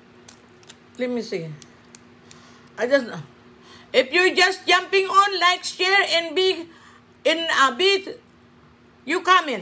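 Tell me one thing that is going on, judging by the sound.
A middle-aged woman talks close to a microphone with animation.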